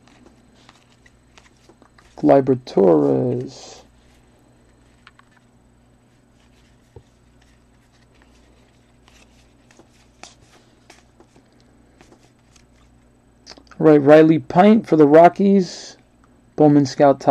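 Trading cards rustle and flick softly as they are shuffled by hand.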